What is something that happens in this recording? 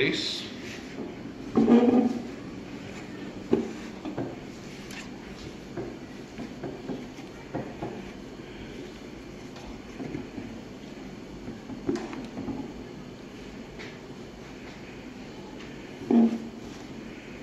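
Sheet metal clanks and rattles as hands handle a metal box.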